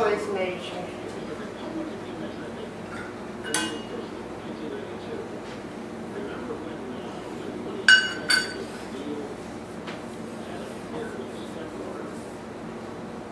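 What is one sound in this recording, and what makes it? Dough is patted and pressed with soft thuds.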